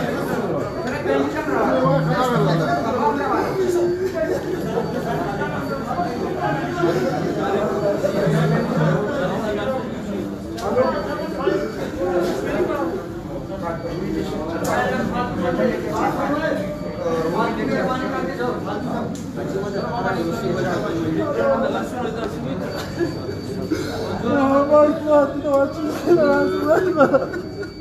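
A crowd of men chatters loudly in an echoing room.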